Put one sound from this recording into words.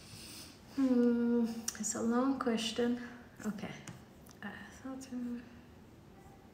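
A young woman speaks close by in a high, expressive voice.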